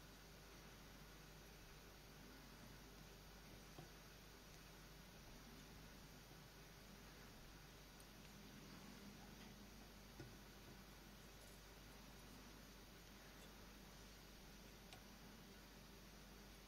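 Thin thread softly rasps as it is wound tightly around a small hook.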